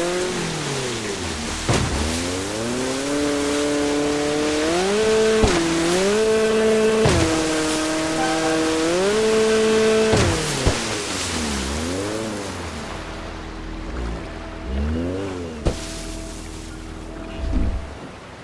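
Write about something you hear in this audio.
Water splashes and sprays behind a jet ski.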